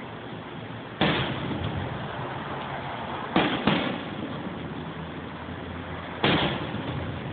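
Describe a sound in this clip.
Fireworks boom loudly overhead and echo.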